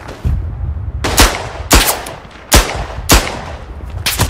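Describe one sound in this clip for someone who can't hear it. A pistol fires several loud, sharp shots close by.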